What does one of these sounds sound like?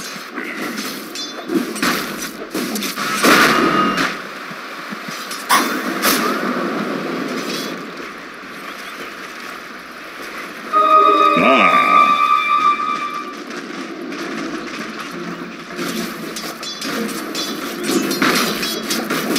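Game weapons clash and spells crackle in a fight.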